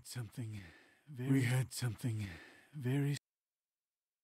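A man talks into a microphone with animation, heard up close.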